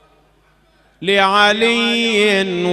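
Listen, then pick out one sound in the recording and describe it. A man chants loudly into a microphone in a drawn-out, sung voice.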